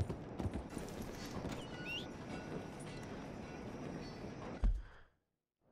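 A horse's hooves clop on wooden planks.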